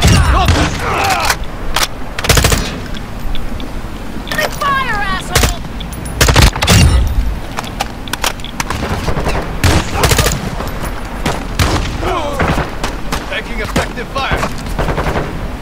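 An automatic rifle fires in a video game.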